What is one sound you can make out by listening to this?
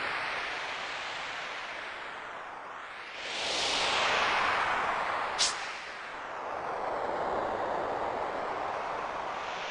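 A snowboard hisses steadily across snow, swelling and fading.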